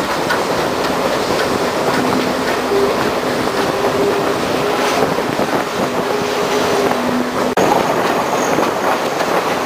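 An open train car rattles and clatters along the tracks.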